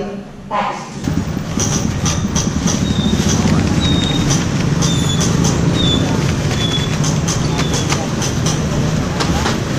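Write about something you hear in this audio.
A crowd murmurs and moves about outdoors.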